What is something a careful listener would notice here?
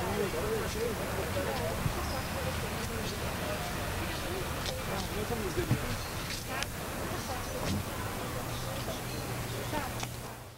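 A middle-aged woman talks warmly nearby.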